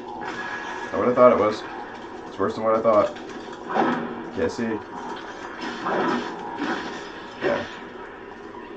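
Metal blades clash and clang in a game fight.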